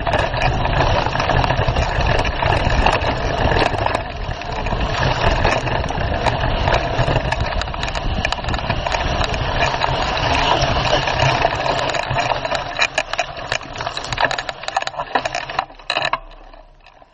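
A motorbike engine roars as the bike rides fast along a dirt trail.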